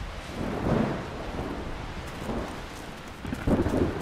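Footsteps run over grassy ground.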